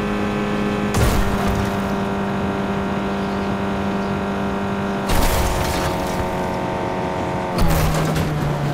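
A car crashes with loud thuds.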